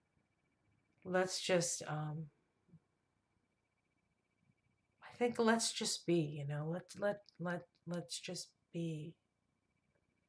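A middle-aged woman speaks calmly and close by, in short bursts with pauses.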